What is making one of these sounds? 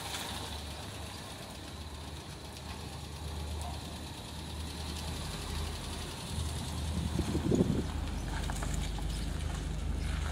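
A car drives slowly away over the road.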